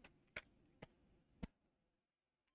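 A plastic handheld device clicks softly in hands.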